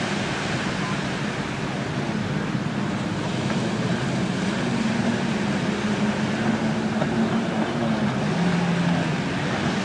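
Men talk casually nearby, outdoors.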